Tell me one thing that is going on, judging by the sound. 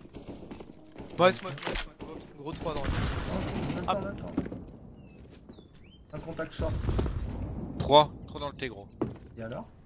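A man talks with animation through a headset microphone.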